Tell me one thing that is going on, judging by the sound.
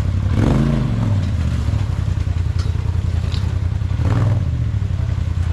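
An off-road buggy engine roars and revs loudly.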